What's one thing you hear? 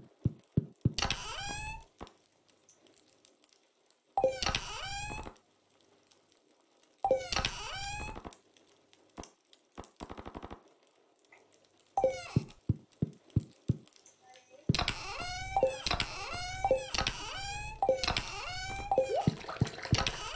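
Short chirpy chimes rise and fall in quick bursts.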